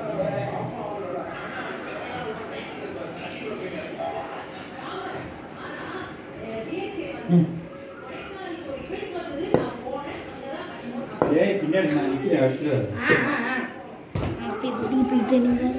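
Bare feet shuffle and patter on a hard floor.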